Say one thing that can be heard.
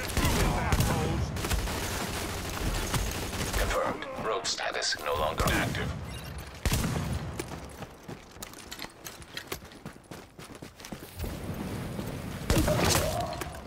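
Automatic rifle fire rattles in bursts.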